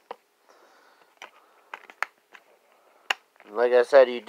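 A plastic disc case clicks and rattles as it is handled.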